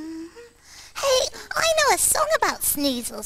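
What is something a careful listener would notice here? A high, squeaky cartoonish voice speaks with animation.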